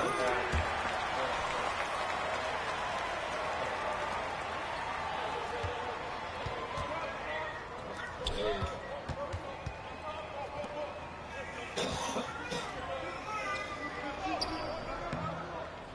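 A crowd cheers and murmurs.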